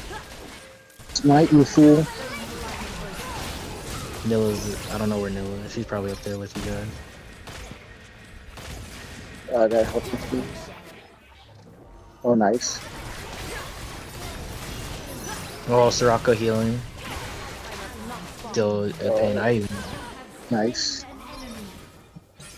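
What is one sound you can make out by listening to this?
Magic spells whoosh and blast in quick bursts.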